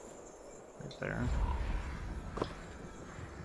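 A horse's hooves crunch on snow.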